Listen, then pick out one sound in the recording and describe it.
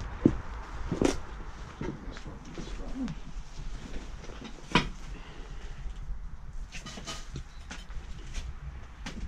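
Objects clatter and knock as a man rummages through clutter.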